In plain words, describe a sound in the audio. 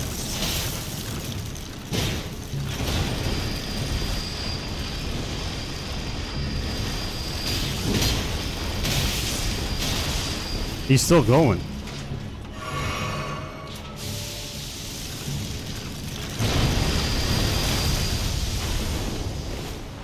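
A sword swings with icy whooshing blasts.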